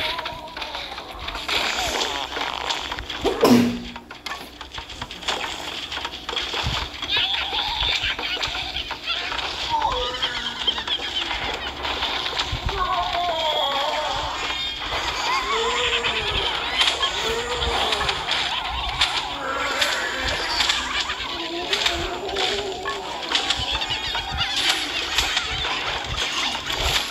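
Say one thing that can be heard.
Cartoonish popping shots fire rapidly and steadily.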